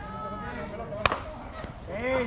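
A bat cracks sharply against a ball.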